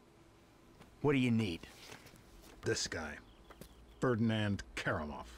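A second man answers calmly.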